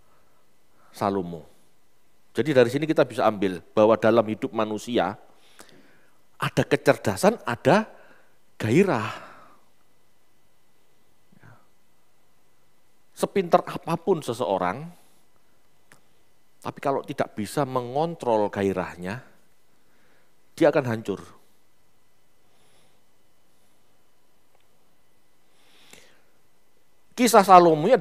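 A middle-aged man speaks with animation into a head microphone, with long pauses between phrases.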